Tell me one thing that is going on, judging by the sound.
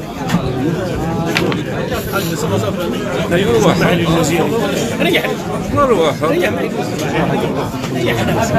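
An elderly man speaks forcefully into a microphone.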